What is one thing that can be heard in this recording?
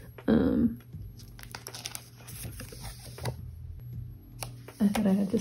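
Plastic sleeves rustle and crinkle as a card is slid out of a pocket.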